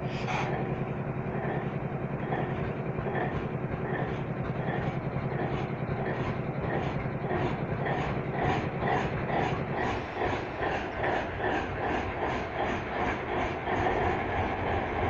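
Locomotive wheels clack rhythmically over rail joints.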